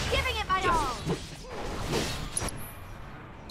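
A creature's magic attack bursts with a whooshing crackle.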